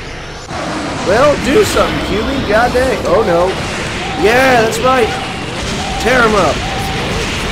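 A man talks excitedly into a microphone, close up.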